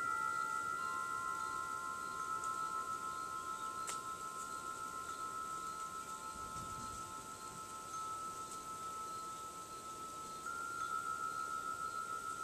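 Metal wind chimes ring with long, steady, overlapping tones.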